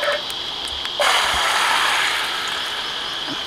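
Beaten egg pours into a hot pan with a loud sizzle.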